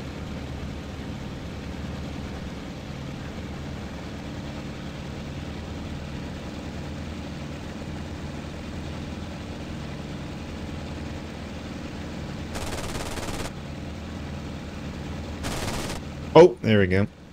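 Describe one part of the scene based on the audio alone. Piston engines of a propeller aircraft drone in flight.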